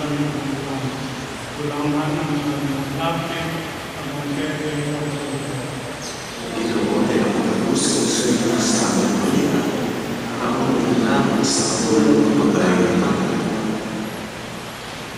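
An older man chants slowly into a microphone in a large echoing hall.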